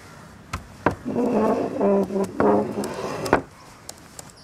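A wooden chair scrapes across a hard floor.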